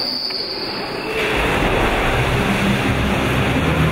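A swimmer dives into the water with a splash.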